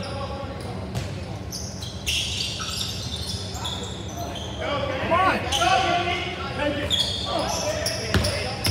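Spectators chatter in a large echoing gym.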